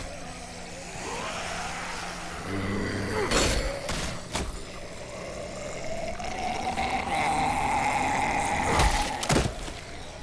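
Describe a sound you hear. Zombies groan and snarl nearby.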